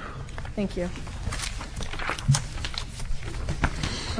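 Papers rustle close to a microphone.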